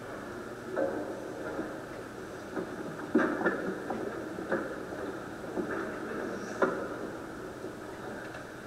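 A man speaks quietly in a large echoing hall.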